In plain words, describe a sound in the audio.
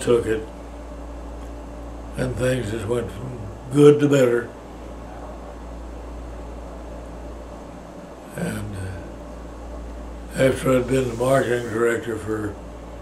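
An elderly man speaks slowly and calmly in short phrases, with pauses, close to the microphone.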